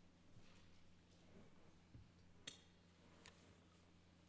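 Metal and glass vessels clink softly as a man sets them down.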